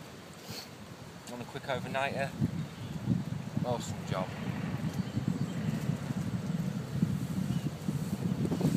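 Wind buffets outdoors, rumbling low.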